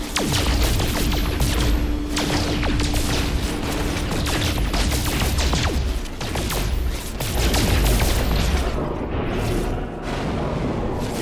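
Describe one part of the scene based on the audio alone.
A laser beam buzzes steadily as it cuts into rock.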